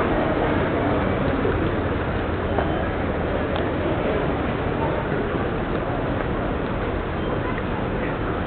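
Traffic and city noise rumble steadily outdoors.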